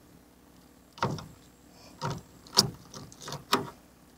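Hands click and rattle a fishing reel.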